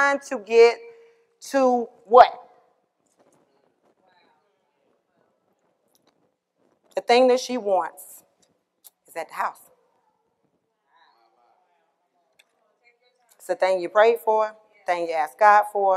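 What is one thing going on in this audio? A woman speaks calmly through a microphone, with pauses.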